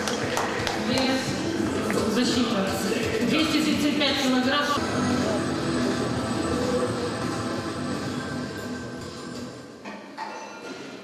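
A crowd murmurs and talks loudly in a large echoing hall.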